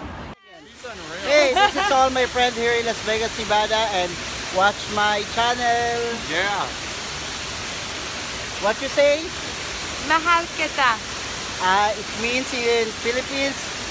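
A young woman talks and laughs close to the microphone.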